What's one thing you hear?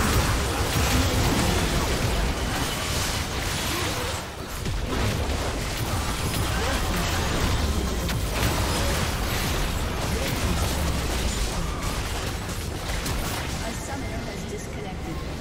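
Magic spells blast and crackle in a fierce battle.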